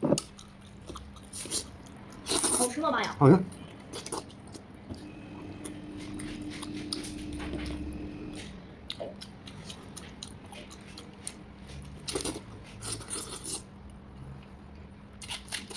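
A man chews with wet smacking sounds, close to a microphone.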